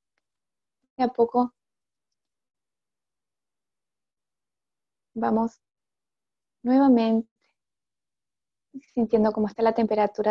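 A woman speaks calmly in short bursts, close to a microphone, as if on an online call.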